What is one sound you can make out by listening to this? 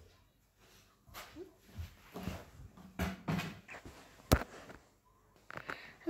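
A plastic watering can bumps and knocks.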